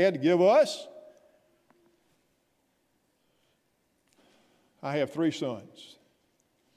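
An elderly man speaks with emphasis through a microphone.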